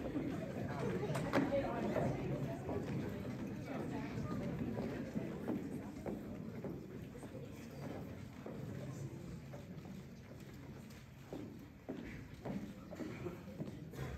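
A large choir sings in an echoing hall.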